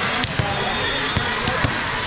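A volleyball bounces on the floor.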